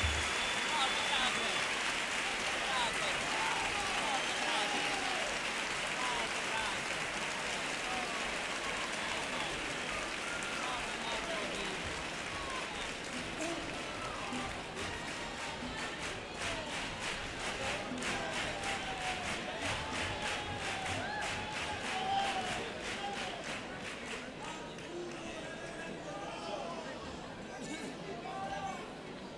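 Guitars strum along with the singing.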